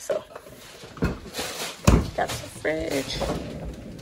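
A freezer drawer slides open.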